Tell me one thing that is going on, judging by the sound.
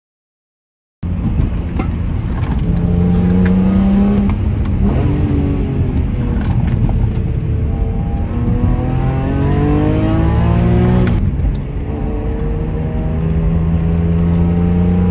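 A car engine roars loudly, revving up and dropping as it shifts gears.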